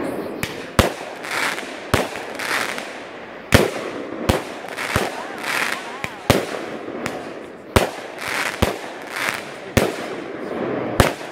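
Firework sparks crackle and hiss after each burst.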